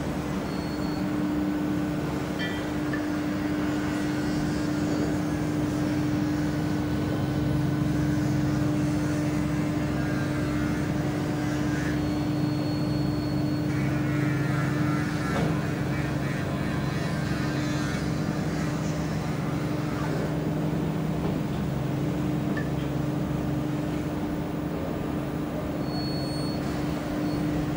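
A tugboat engine hums low and steady.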